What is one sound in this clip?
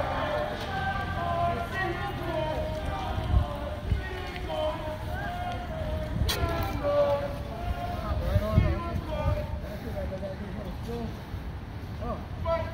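A crowd of people sings together a short way ahead, outdoors.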